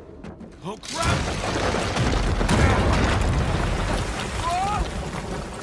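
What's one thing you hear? Wooden planks crack and collapse with a loud rumble.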